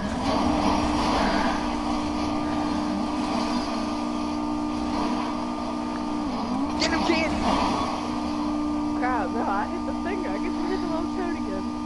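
Tyres screech as a car spins on concrete.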